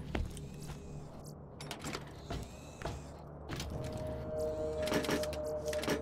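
A metal lid creaks open.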